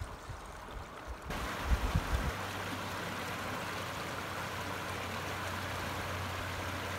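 Shallow river water rushes and laps steadily against ice and stones.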